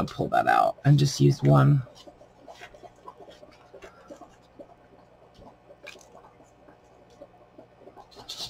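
Paper and fabric rustle softly as hands fold them.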